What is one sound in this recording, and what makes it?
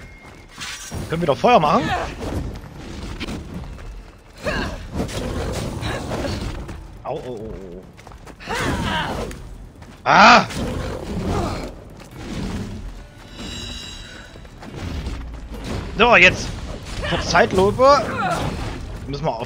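A large lion roars and snarls.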